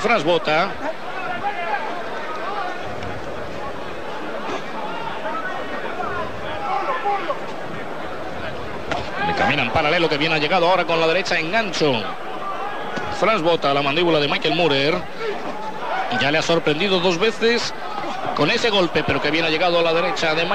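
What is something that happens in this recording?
A large crowd murmurs and cheers in a big arena.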